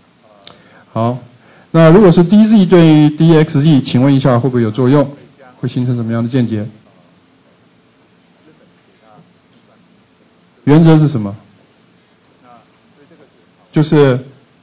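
A man lectures through a microphone in a pausing, explaining manner.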